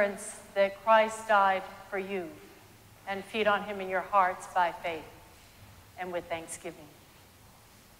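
A woman speaks slowly and clearly into a microphone in an echoing hall.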